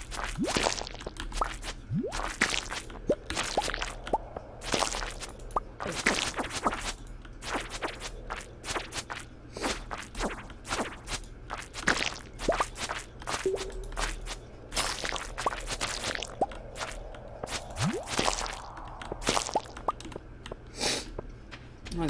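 A sword swishes and strikes weeds and rocks again and again.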